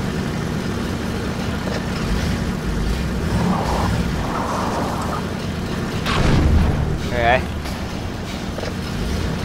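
A buggy engine rumbles low and steady.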